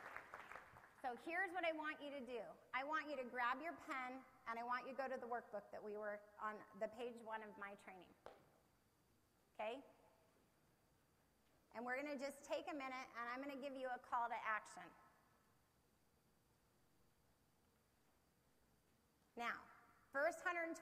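A woman speaks calmly through a microphone, with pauses.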